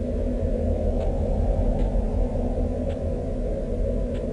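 A magic spell casts with a sparkling chime.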